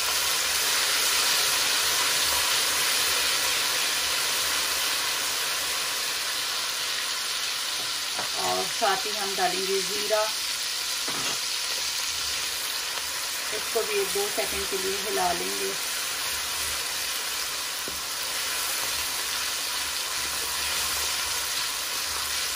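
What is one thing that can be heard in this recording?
A wooden spatula scrapes against a metal pan.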